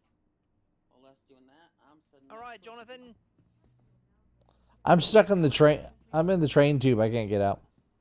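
A middle-aged man speaks into a headset microphone, quietly at first and then with animation.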